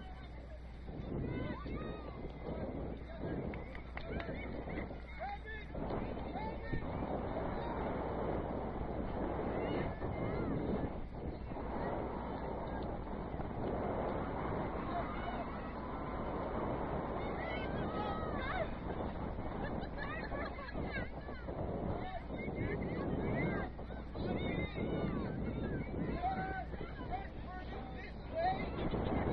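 Young women call out to each other across an open field outdoors.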